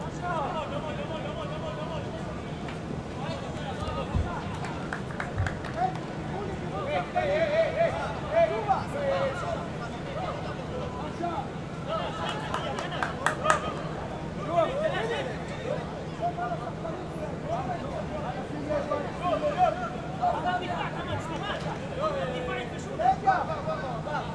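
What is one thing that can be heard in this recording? Men shout to one another across an open pitch.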